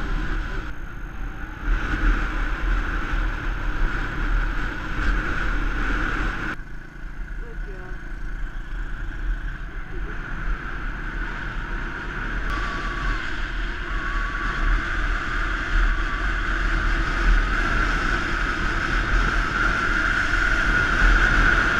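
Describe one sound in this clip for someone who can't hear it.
Wind buffets and rumbles loudly.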